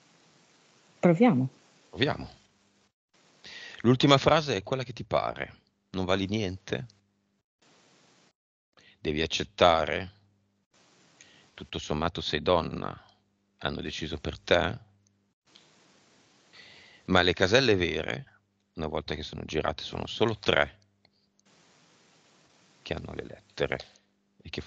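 A man speaks calmly into a headset microphone, heard through an online call.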